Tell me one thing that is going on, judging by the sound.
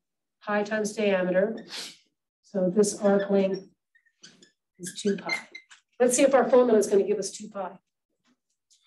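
A woman speaks clearly and steadily through a microphone, lecturing.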